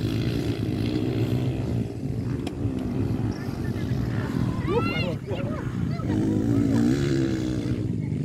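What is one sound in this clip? Dirt bike engines buzz and whine in the distance, revving up and down.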